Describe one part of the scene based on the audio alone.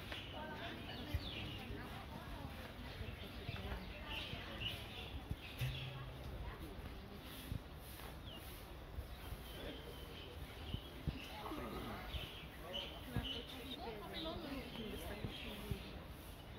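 Young women chat quietly a little way off.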